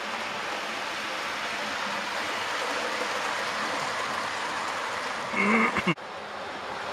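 A model electric train rumbles past on model track.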